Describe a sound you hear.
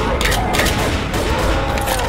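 Pistol shots crack rapidly.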